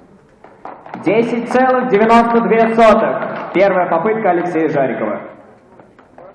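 A young man announces through a microphone.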